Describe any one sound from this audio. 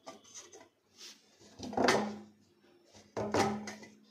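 A plastic hose creaks and rattles as hands move it.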